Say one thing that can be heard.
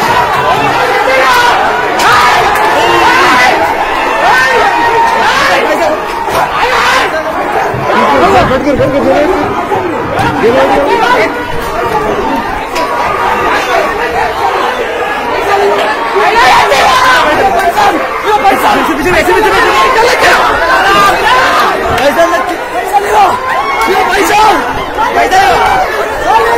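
A crowd of men shouts and argues loudly nearby.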